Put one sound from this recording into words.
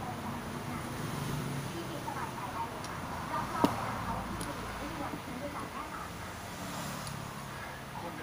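Water drips softly from a dropper onto a stone.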